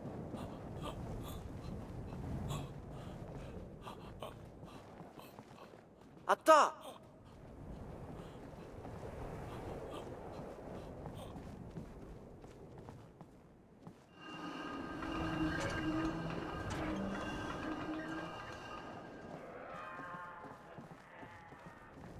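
Footsteps tap on wooden planks.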